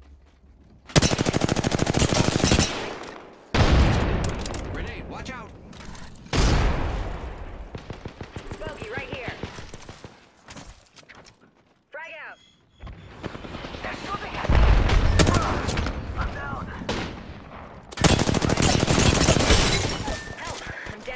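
Rapid gunfire rattles out in loud bursts.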